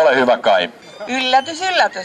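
A woman speaks through a microphone.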